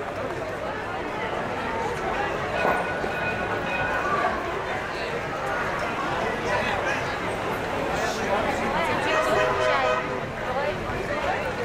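Footsteps walk on paving stones.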